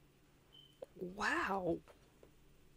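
A young woman exclaims with animation close to a microphone.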